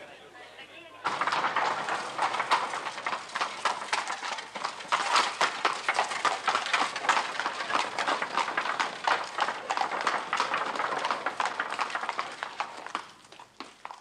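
Carriage wheels rattle over cobblestones.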